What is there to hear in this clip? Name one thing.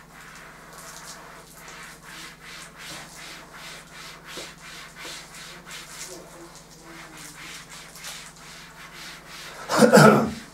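A cloth wipes a chalkboard with quick, rhythmic rubbing.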